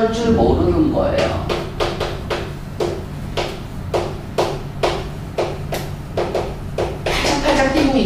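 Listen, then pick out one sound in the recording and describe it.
Chalk taps rapidly and repeatedly against a blackboard.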